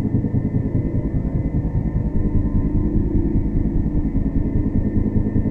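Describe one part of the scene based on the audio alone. A heavy vehicle engine rumbles steadily as it drives over rough ground.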